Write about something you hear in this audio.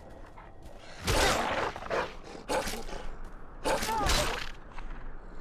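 Wolves snarl and growl up close.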